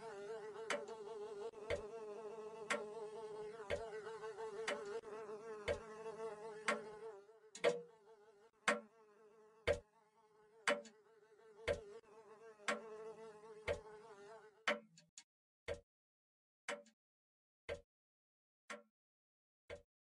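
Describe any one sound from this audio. Slow footsteps thud steadily on a wooden floor.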